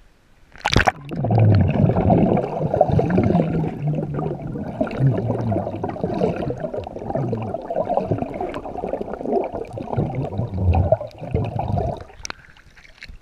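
A man blows bubbles underwater with a muffled, rumbling gurgle.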